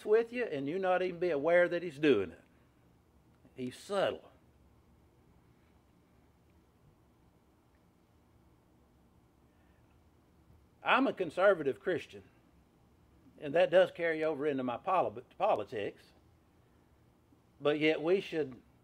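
A middle-aged man speaks calmly and deliberately nearby, with long pauses between phrases.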